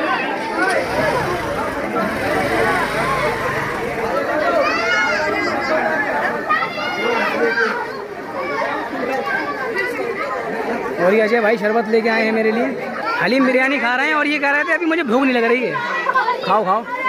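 Many children chatter and call out nearby.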